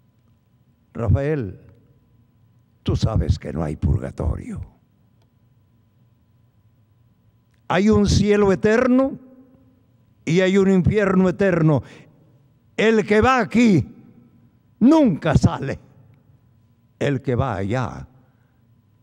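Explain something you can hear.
An elderly man speaks with emphasis into a microphone, in short bursts with pauses.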